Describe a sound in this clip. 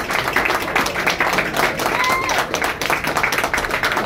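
A man nearby claps his hands.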